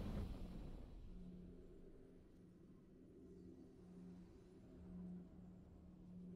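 Triumphant game music plays softly and steadily.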